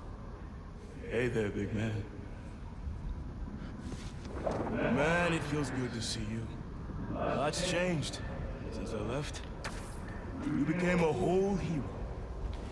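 A man speaks calmly in a deep voice, close by.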